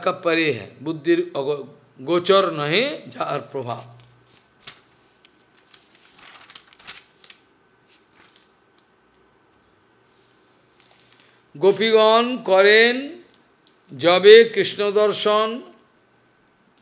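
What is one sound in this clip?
An elderly man speaks calmly and slowly, with long pauses.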